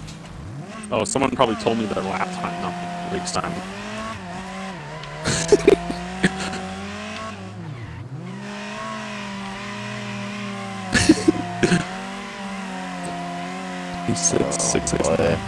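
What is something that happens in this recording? A car engine revs and whines steadily, rising and falling in pitch.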